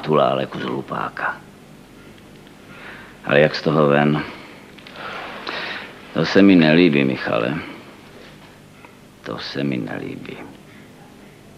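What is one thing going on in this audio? An older man speaks with animation, close by.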